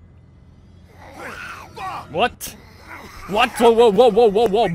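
A man shouts in alarm.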